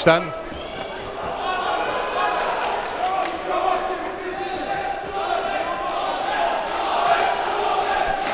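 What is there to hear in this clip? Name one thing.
A crowd in a large indoor hall murmurs and cheers.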